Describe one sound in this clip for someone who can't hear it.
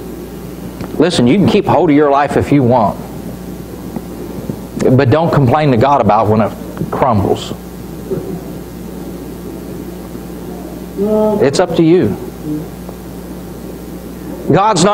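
A middle-aged man speaks slowly and deliberately through a microphone in a room with some echo.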